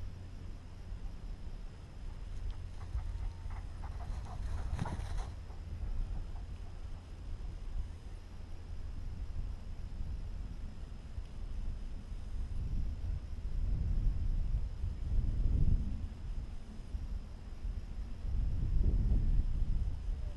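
Wind rumbles and buffets outdoors in open country.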